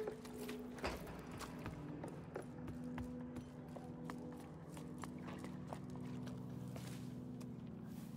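Footsteps tap on wooden boards.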